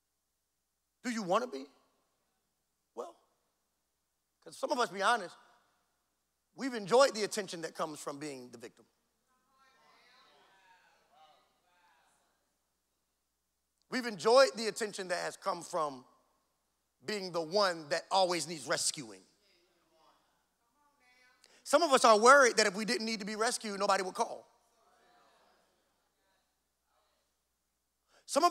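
A man speaks with animation into a microphone, heard through loudspeakers, with pauses between phrases.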